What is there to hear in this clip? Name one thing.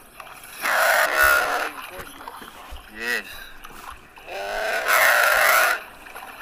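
Water splashes as animals struggle.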